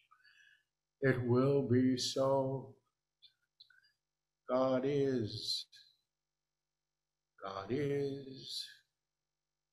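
An older man speaks slowly and calmly in short phrases through a microphone.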